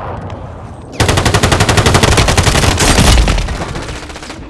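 A gun fires in a fast, rapid burst.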